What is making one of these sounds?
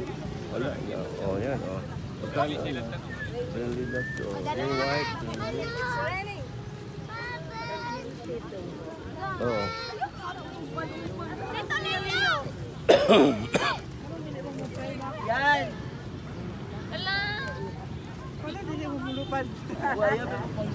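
Young girls talk excitedly nearby.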